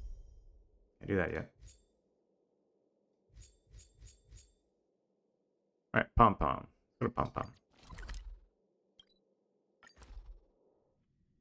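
Short electronic menu sounds click and chime.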